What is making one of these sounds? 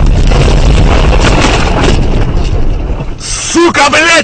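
A powerful blast rumbles and crackles close by.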